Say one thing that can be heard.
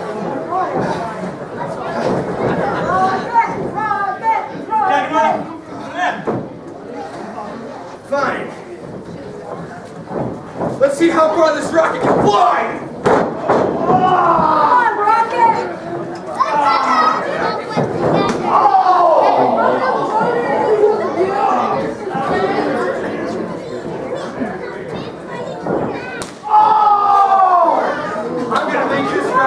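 A crowd in an echoing hall cheers and shouts.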